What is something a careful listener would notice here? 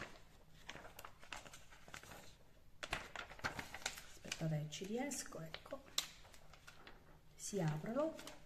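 Thin paper rustles and crinkles close by.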